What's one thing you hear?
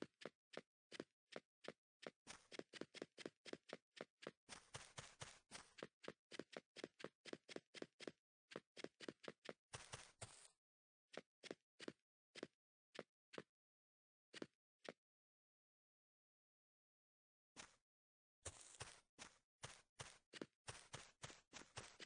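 Blocks are placed in a game with quick, rapid clicks.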